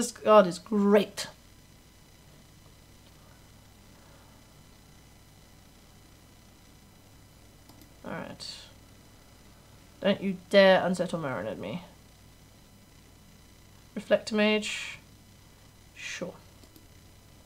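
A young woman speaks calmly into a close microphone, in short bursts with long pauses.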